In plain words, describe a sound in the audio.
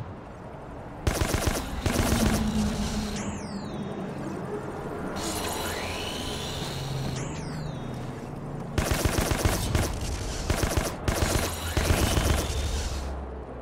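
Gunshots ring out in short bursts.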